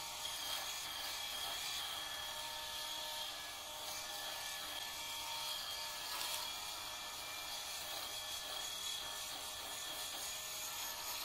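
An electric shaver buzzes steadily, close by.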